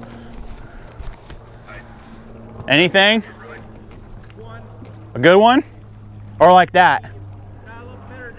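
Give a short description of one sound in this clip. Water laps gently against a small boat's hull.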